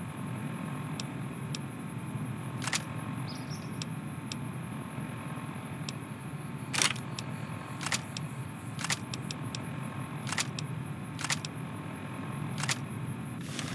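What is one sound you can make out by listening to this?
Menu selections click softly.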